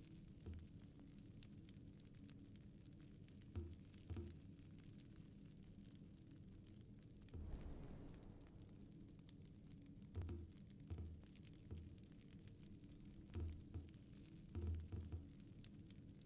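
Soft interface clicks sound as menu selections change.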